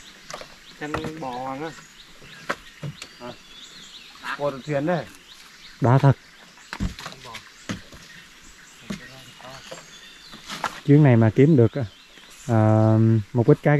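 Young men talk and call out to each other outdoors, close by.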